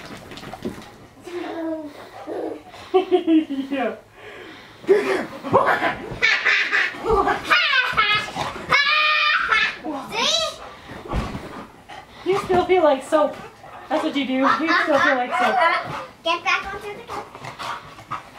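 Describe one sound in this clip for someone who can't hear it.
A woman talks animatedly to a dog close by.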